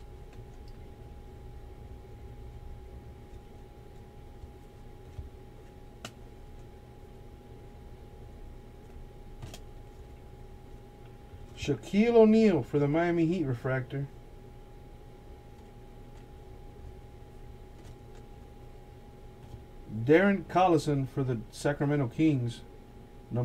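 Trading cards rustle and slide softly as they are shuffled by hand.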